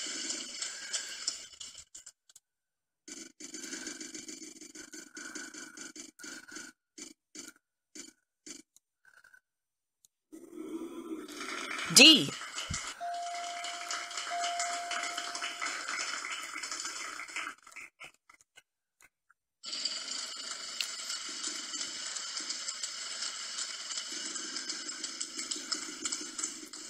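A game wheel ticks rapidly as it spins, heard through a small loudspeaker.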